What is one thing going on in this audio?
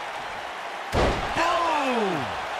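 A body slams hard onto a ring mat with a heavy thud.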